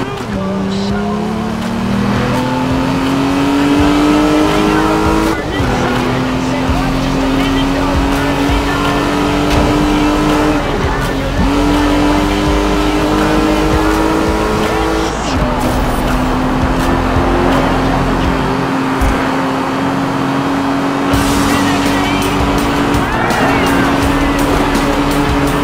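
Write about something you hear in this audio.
Tyres hiss on the road at high speed.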